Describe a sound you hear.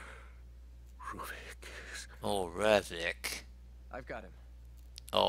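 A second man speaks briskly, close by.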